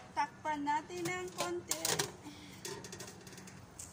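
A metal lid clatters onto a pot.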